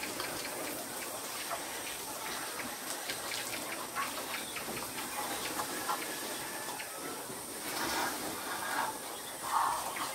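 Wire cage doors rattle and clink.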